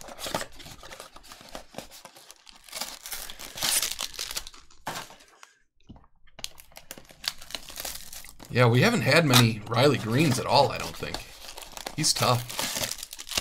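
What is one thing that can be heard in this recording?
Cardboard flaps scrape and rustle as a box is opened.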